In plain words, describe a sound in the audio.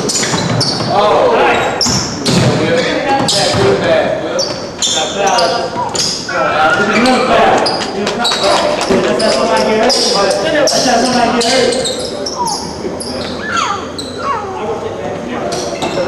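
Young men shout and call out to each other across the court.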